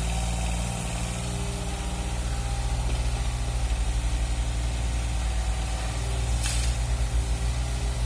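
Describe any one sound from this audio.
Rubble scrapes and rattles as an excavator bucket digs and dumps.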